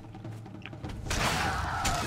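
A weapon swings and strikes a creature.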